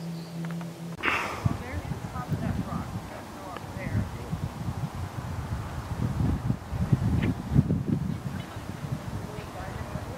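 Wind buffets the microphone outdoors in low, uneven gusts.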